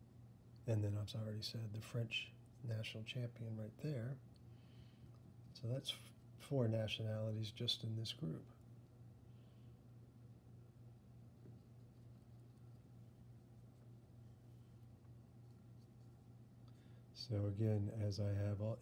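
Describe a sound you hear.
A small brush strokes softly across paper.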